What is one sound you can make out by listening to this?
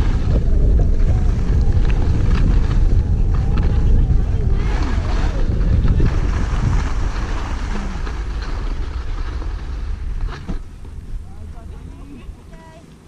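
Wind rushes loudly past while skiing downhill.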